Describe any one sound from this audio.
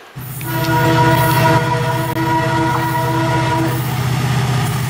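A locomotive horn blares with a long steady tone.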